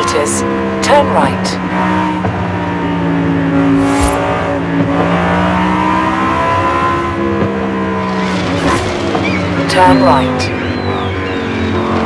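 A sports car engine roars steadily, its pitch rising and falling through gear changes.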